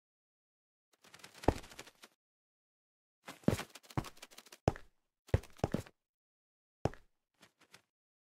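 Footsteps thud on stone steps.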